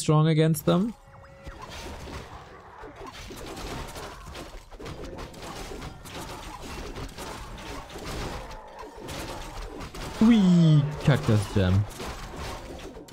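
Weapons clash and spells burst in a busy battle.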